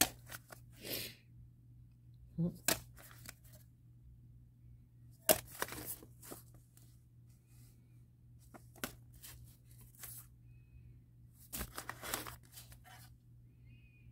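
Vinyl records in paper sleeves rustle and clack as they are sorted by hand.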